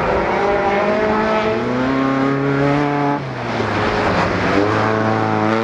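A rally car engine revs hard, rising and dropping in pitch as it shifts gears.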